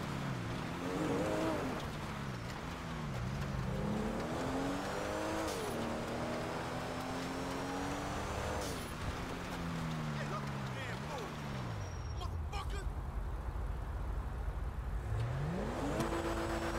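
A sports car engine revs up and down.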